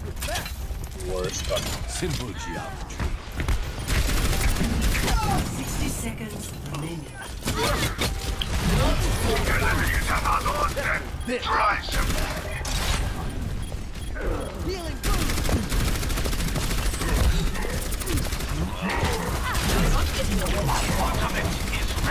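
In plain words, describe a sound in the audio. A video game gun fires in rapid bursts.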